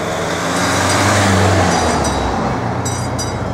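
A delivery van drives past.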